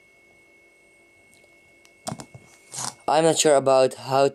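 A phone is set down on a hard surface with a soft knock.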